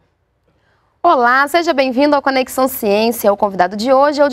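A woman speaks clearly and warmly into a close microphone.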